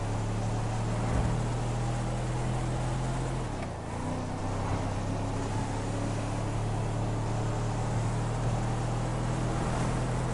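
A car engine hums steadily as a vehicle drives along a road.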